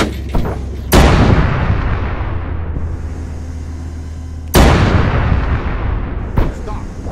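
Loud explosions boom and rumble away.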